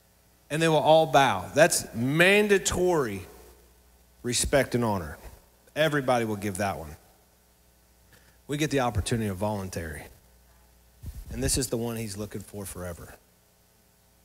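A man speaks calmly into a microphone, heard through a loudspeaker.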